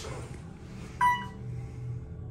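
An elevator chime rings once.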